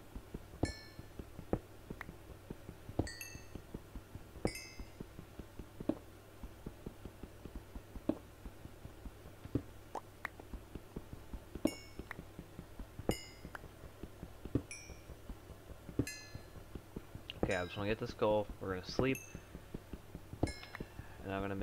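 A pickaxe chips at stone with quick, regular taps.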